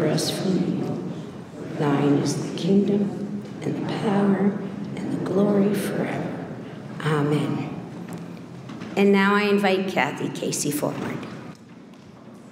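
A woman recites a prayer aloud into a microphone, in a room with some echo.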